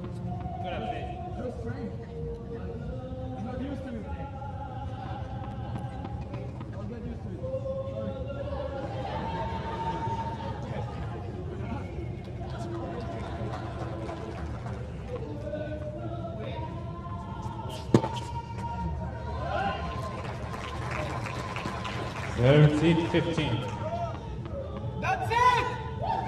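A crowd murmurs and cheers in an open stadium.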